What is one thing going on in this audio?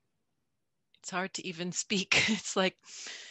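A middle-aged woman speaks warmly and laughs over an online call.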